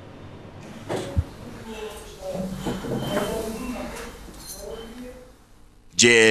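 A man talks at a distance in a small room.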